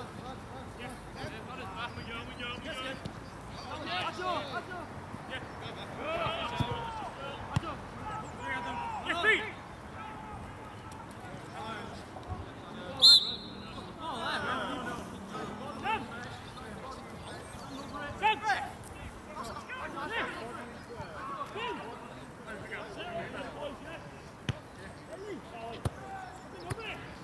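Players shout and call to each other across an open field.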